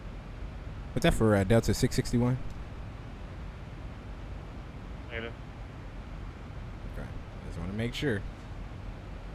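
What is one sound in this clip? A young man speaks casually into a microphone, close by.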